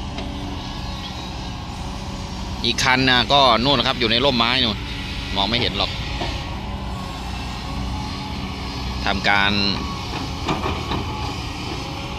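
An excavator bucket scrapes and dumps loose dirt.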